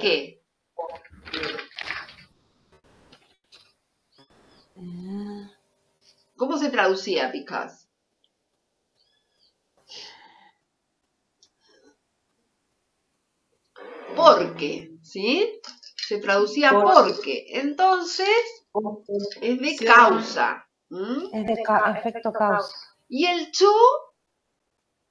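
A woman speaks calmly over an online call, pausing now and then.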